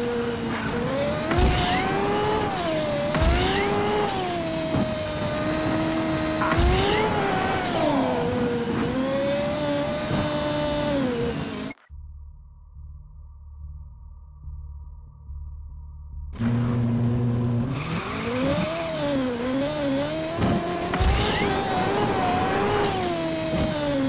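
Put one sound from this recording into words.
A racing car engine roars, its pitch rising and falling as it speeds up and slows down.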